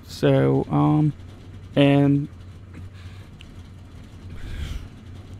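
A race car engine idles with a low steady rumble.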